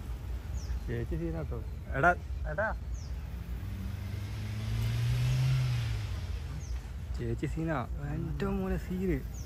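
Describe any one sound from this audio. Men call out and talk nearby outdoors.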